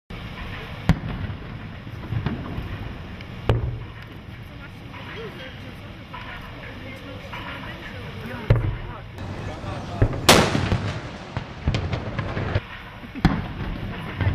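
Distant naval guns fire in dull booms, every few seconds.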